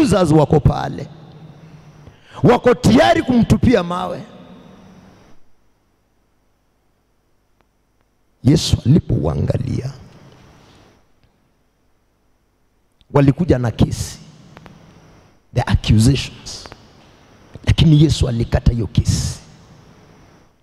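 A man preaches forcefully into a microphone, in bursts with pauses, echoing in a room.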